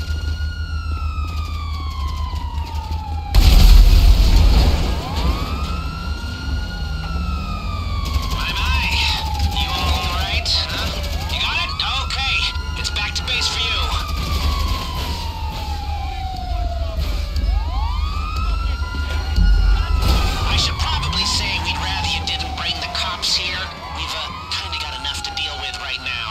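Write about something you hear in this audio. A police siren wails up and down steadily nearby.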